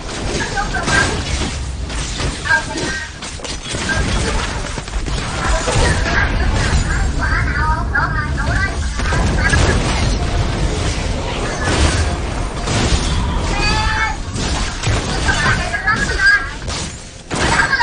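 Spells burst and crackle in a fast, noisy fight.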